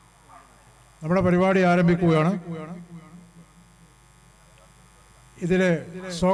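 An elderly man gives a speech with animation through a microphone and loudspeakers.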